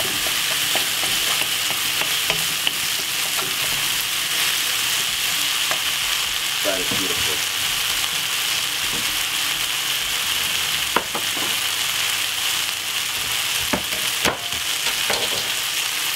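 Vegetables sizzle steadily in hot oil.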